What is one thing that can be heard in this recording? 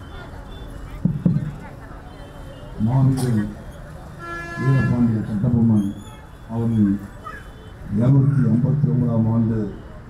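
A man speaks loudly into a microphone over a loudspeaker, with an echo.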